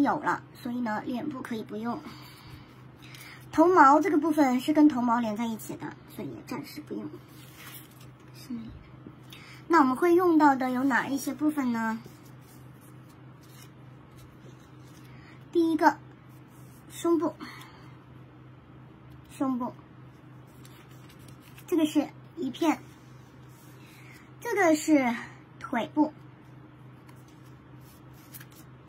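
Thin paper rustles and crinkles between hands.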